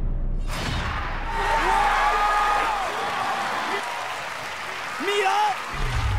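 A man exclaims in surprise close to a microphone.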